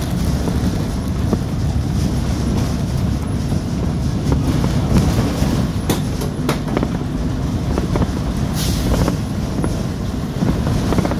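Tyres hum on a road surface.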